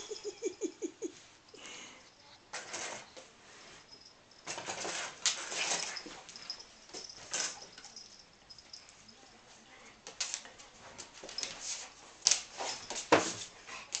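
Paws scuffle and patter on a hard floor as a cat and a dog play.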